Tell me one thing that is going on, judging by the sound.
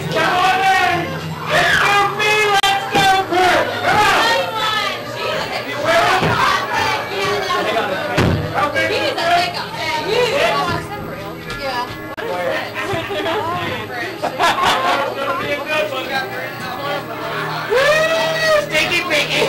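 Several young women talk and laugh excitedly close by.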